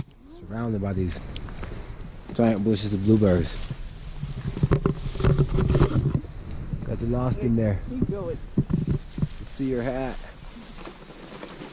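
Leaves and branches rustle as people push through dense bushes.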